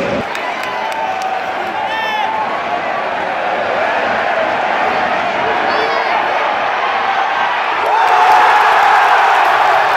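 A large stadium crowd roars and chants loudly, swelling near the end.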